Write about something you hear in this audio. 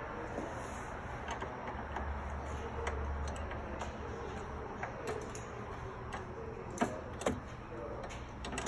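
Metal tools click and knock against engine parts.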